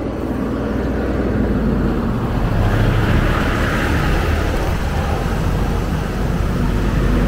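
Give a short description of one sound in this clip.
A diesel cement mixer truck rumbles past close by.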